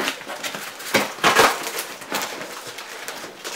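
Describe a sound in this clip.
A knife slices through cardboard tape with scratchy rasps.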